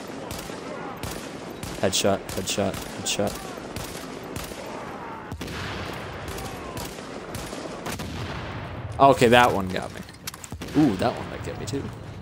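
Rifle shots crack again and again.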